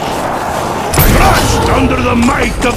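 A large gun fires a deep whooshing blast.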